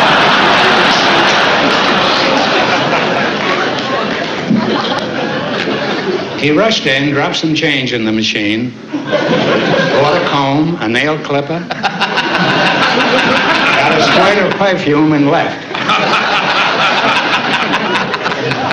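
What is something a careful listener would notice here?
An audience laughs and applauds loudly in a large hall.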